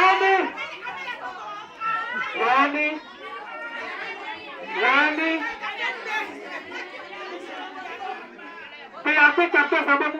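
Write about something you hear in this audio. A crowd of women and men chatters and calls out.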